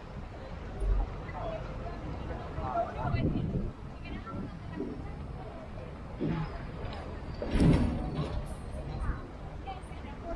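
Men and women chatter nearby in a passing crowd.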